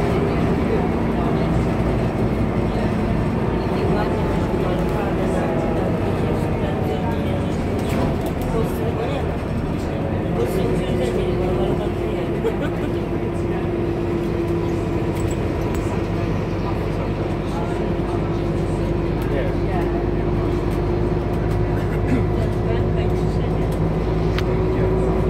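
A bus engine hums and drones steadily, its pitch shifting as it changes gear.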